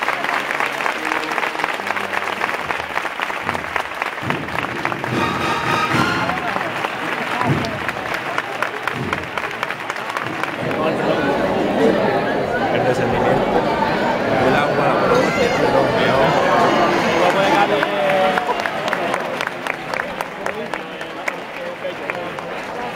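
A crowd murmurs and chatters close by.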